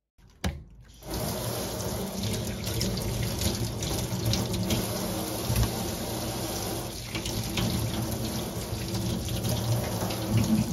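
Tap water pours and splashes into a metal sink.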